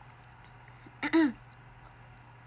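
A young woman makes a short, surprised exclamation, close by.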